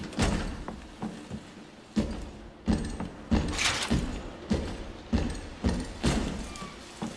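Footsteps thud slowly and evenly on a hard floor, echoing slightly.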